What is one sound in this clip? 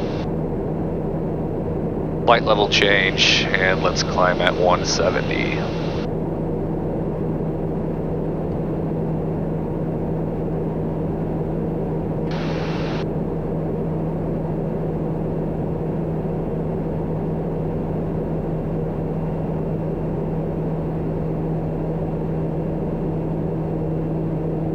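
An aircraft engine drones steadily inside a cockpit.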